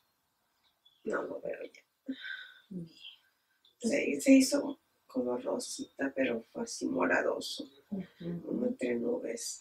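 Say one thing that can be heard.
A middle-aged woman speaks calmly close by.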